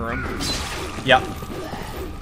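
Metal blades slash through the air with a sharp swish.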